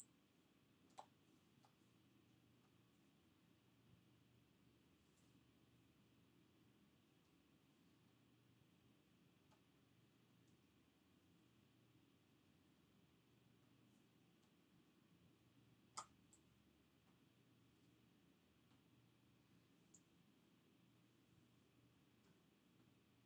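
Light taps and clicks sound now and then on a countertop.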